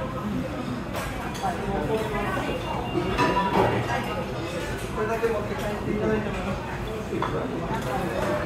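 Chopsticks and a spoon clink against a bowl.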